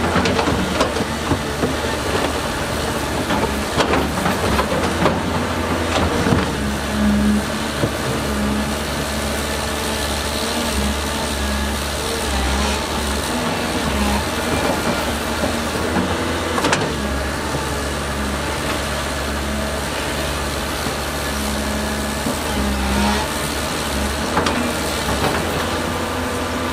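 An excavator engine rumbles steadily and revs.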